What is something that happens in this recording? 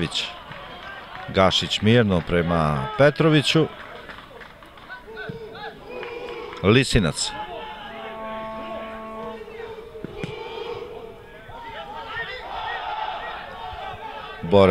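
A crowd murmurs outdoors at a distance.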